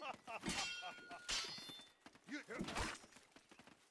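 Steel swords clash with a ringing scrape.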